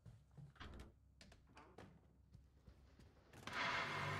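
A wooden door opens.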